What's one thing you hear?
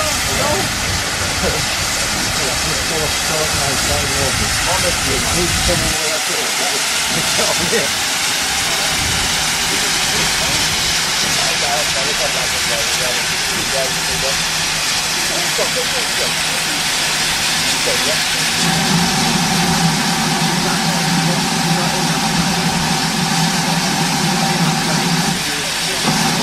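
Steam hisses loudly from a steam locomotive standing close by.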